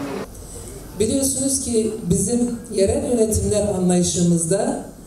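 A woman speaks steadily into a microphone through loudspeakers.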